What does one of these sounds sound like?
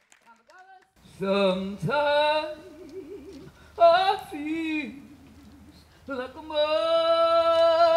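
A woman sings loudly and expressively, unaccompanied.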